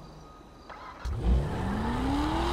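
A car engine starts up.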